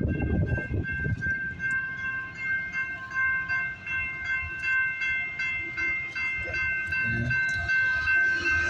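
A railroad crossing bell rings steadily and rapidly.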